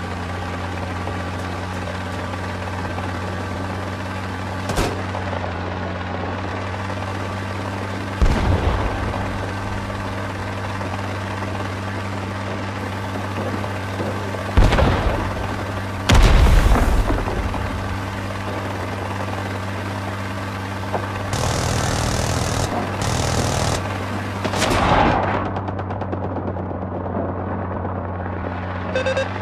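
A helicopter engine drones steadily with beating rotor blades.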